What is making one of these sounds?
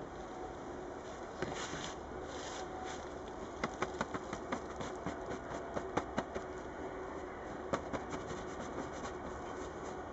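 Paper crinkles and rustles in a man's hands.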